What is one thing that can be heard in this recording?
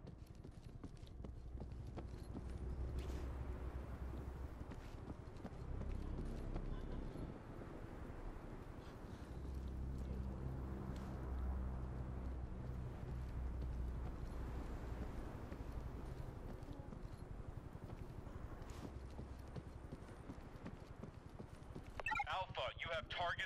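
Footsteps fall steadily on stone paving.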